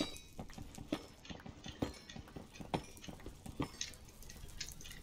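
Blocks crack and break with rapid digging taps.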